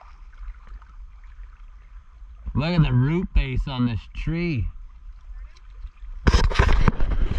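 A paddle dips and splashes gently in water.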